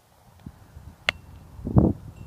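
A club strikes a ball with a sharp crack outdoors.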